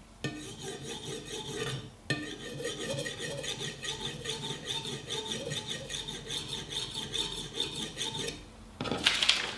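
A knife scrapes and saws into a plastic bottle.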